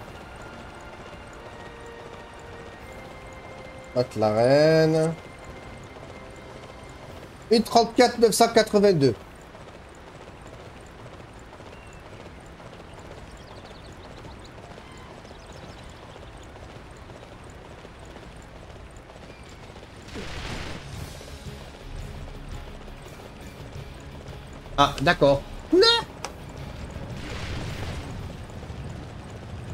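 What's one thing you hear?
A horse's hooves thud along at a gallop.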